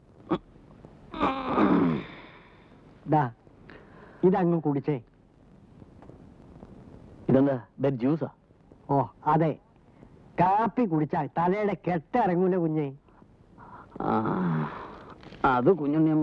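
A younger man answers in a raised voice, close by.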